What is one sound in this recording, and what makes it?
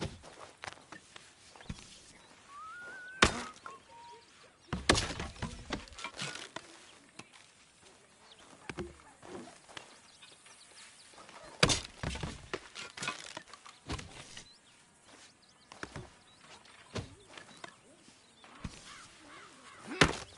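A shovel digs into soil with sharp scraping thuds.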